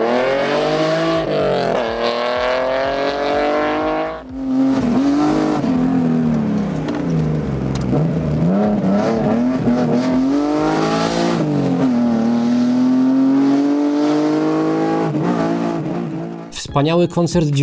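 A car engine revs hard, rising and falling in pitch as it shifts gears.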